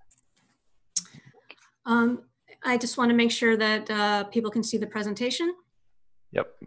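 A woman speaks calmly over an online call, close to the microphone.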